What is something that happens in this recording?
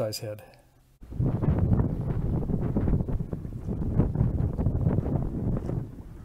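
Water splashes and laps against a moving sailboat's hull.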